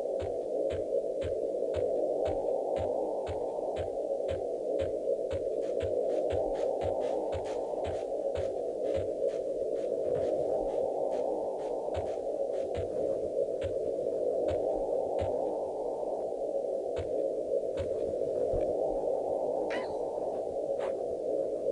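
Quick footsteps thud steadily on grass.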